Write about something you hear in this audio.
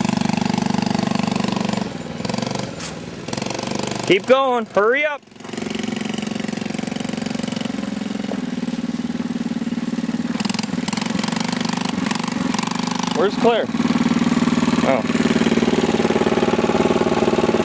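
A small quad bike engine buzzes steadily.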